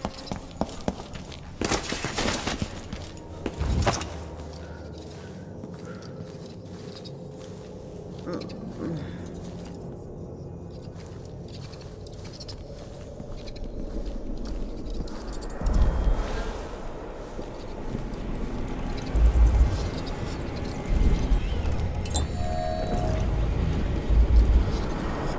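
Footsteps thud on stairs and a wooden floor.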